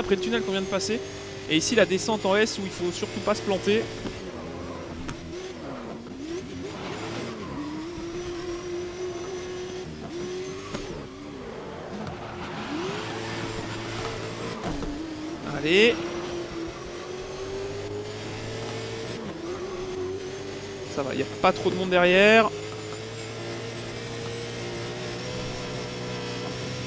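A racing car engine roars steadily at high revs, rising and falling as it shifts gears.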